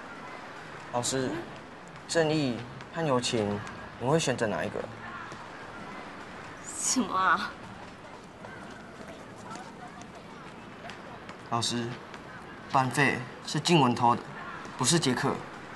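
A teenage boy speaks quietly and earnestly up close.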